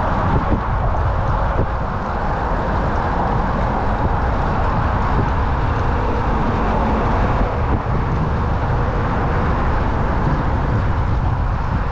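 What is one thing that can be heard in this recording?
Wind rushes loudly past a moving bicycle outdoors.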